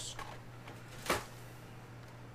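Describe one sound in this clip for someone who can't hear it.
A stack of cards is set down on a table with a slap.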